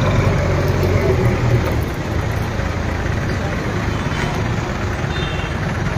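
A motorcycle engine putters past close by.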